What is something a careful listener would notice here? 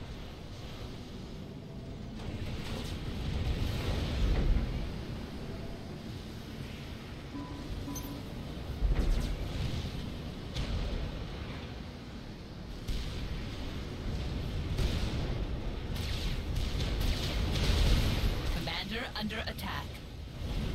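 Explosions rumble and boom in a battle.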